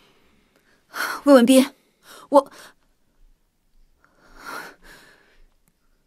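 A young man speaks firmly.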